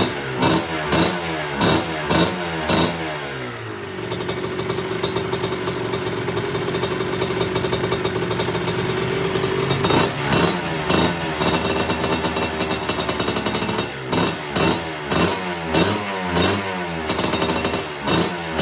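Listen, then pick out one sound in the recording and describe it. A two-stroke dirt bike engine idles and revs hard, popping loudly close by.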